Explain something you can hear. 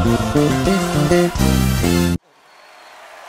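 An electric bass plays a quick, punchy line, then stops abruptly.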